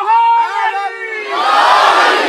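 A man leads a chant loudly through a microphone.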